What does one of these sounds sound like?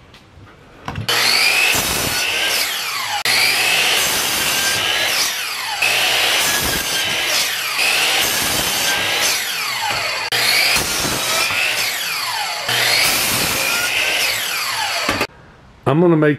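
A power miter saw whines loudly as it repeatedly cuts through wood.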